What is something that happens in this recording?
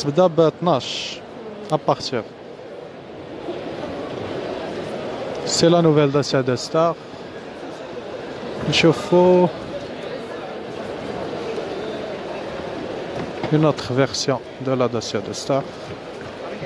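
A man speaks close by in short bursts.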